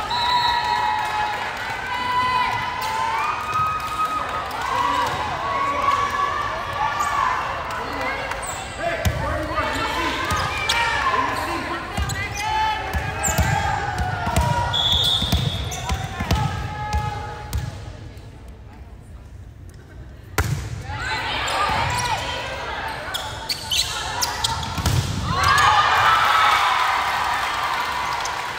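Young women and spectators call out and chatter in a large echoing hall.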